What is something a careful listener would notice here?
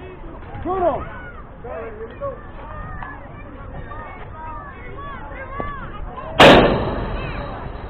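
Children shout and cheer from across an open field.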